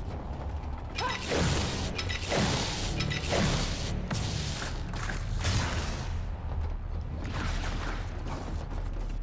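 Laser shots fire in quick bursts.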